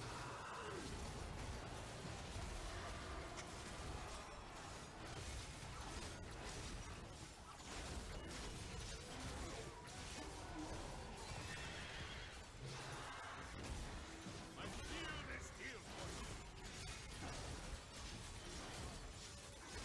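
Fantasy battle sound effects clash, zap and crackle.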